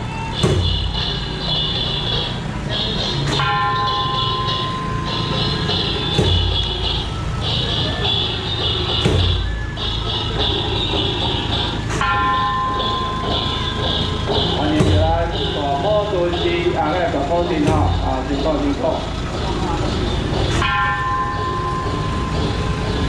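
A truck engine rumbles slowly past.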